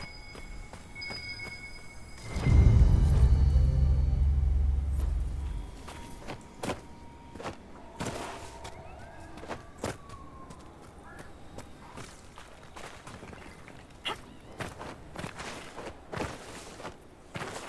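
Footsteps crunch on sand and rock.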